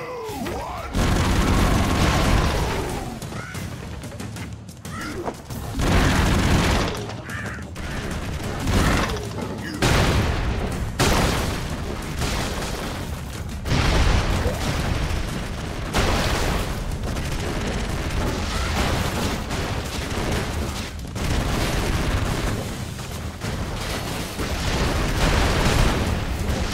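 Gunfire rattles rapidly.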